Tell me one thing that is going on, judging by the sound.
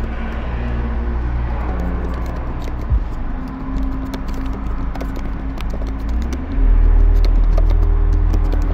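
Keys clatter on a keyboard in quick bursts of typing.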